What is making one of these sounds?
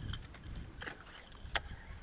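A fishing reel clicks as line is reeled in.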